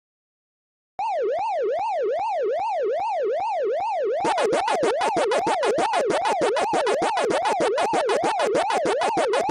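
A video game siren wails up and down in a steady loop.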